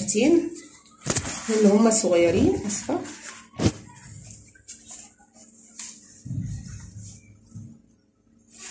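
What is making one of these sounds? Thin sheets of pastry rustle and crinkle as hands handle them.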